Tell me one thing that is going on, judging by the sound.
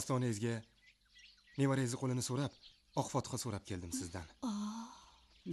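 A young man speaks with feeling, close by.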